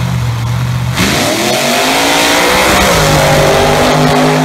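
A drag car's engine roars hard as the car launches and speeds away.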